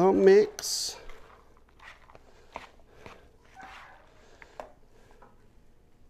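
A metal spoon scrapes and stirs pasta in a plastic bowl.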